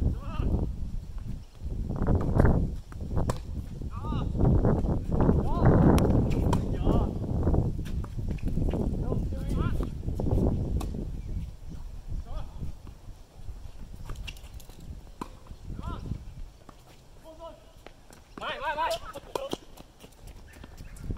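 Tennis balls are struck with rackets and bounce on a hard court.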